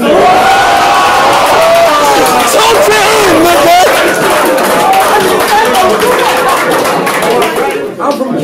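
A crowd of men shouts and cheers loudly.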